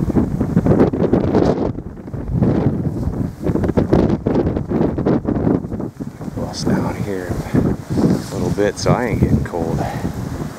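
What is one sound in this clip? Wind gusts loudly outdoors, buffeting and rumbling.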